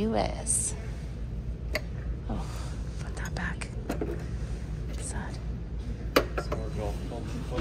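A ceramic mug clinks softly against a shelf.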